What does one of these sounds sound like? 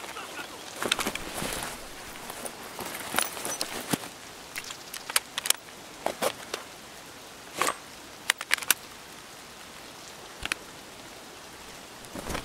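Small items click and rattle as they are moved about.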